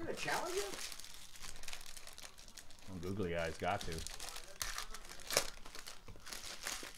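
Foil wrappers crinkle and tear as packs are ripped open.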